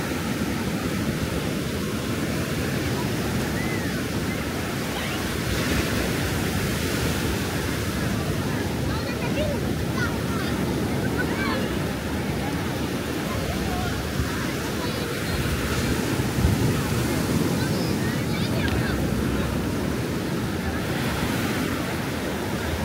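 Wind blows steadily across the beach.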